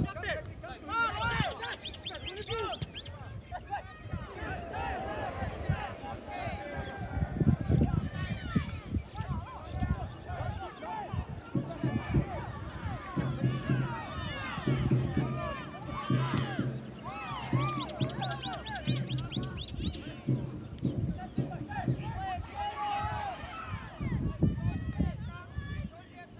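Football players shout to each other in the distance.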